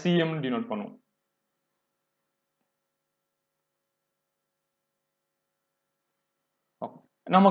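A man speaks calmly into a close microphone, explaining in short phrases with long pauses.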